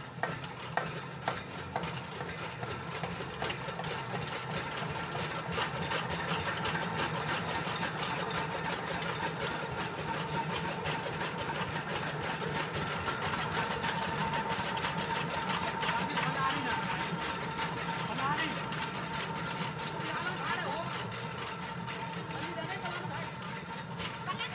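A diesel engine chugs steadily nearby.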